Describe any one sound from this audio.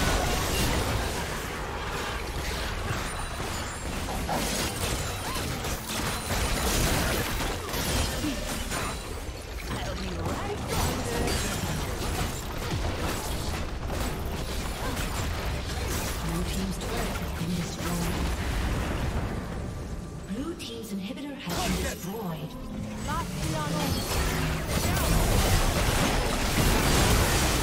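Spells and weapon hits crackle and thud in a busy fight.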